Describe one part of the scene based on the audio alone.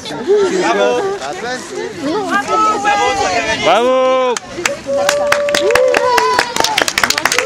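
Children and adults talk and call out excitedly nearby outdoors.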